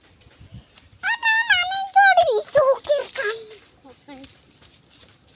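A young child calls out in a high voice nearby.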